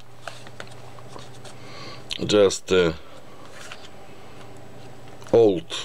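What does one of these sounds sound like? Paper rustles softly as fingers handle cards.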